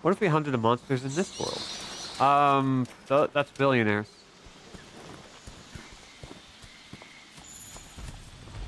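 Footsteps rustle through undergrowth.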